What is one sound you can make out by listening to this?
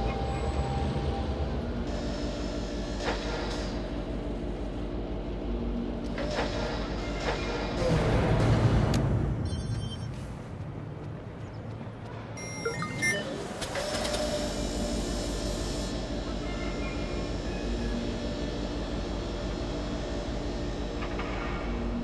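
A small drone hums steadily as it flies.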